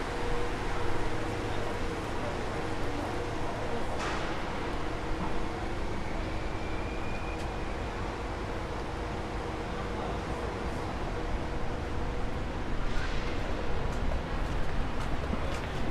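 Distant city traffic hums steadily outdoors.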